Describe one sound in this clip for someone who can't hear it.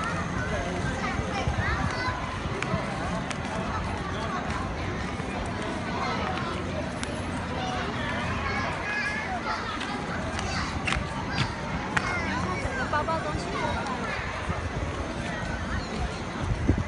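A crowd of adults and children chatter in the background.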